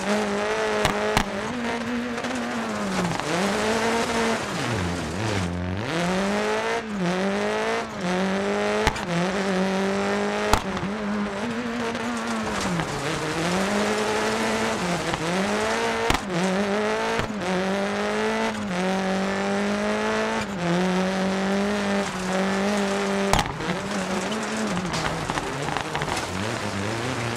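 A rally car engine roars, revving up and dropping sharply with each gear change.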